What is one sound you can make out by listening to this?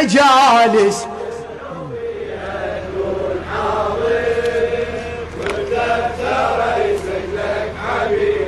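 A crowd of men chants together in unison.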